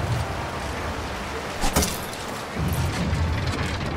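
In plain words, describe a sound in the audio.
Bricks clatter and break apart.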